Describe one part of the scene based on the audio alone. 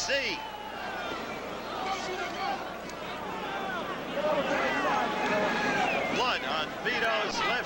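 A large crowd murmurs and shouts in a big echoing arena.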